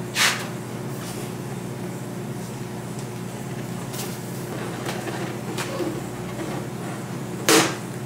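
Rubber squeaks as a balloon is tied off.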